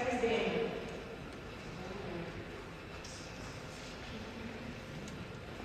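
A man speaks calmly in a large echoing room.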